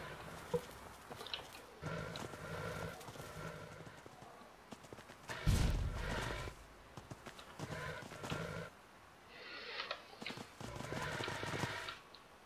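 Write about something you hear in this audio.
Footsteps tread on grass and stone.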